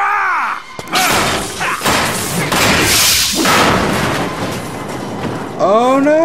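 A loud explosion booms and roars.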